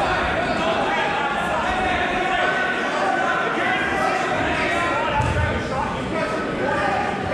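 A crowd of men, women and children chatters throughout a large echoing hall.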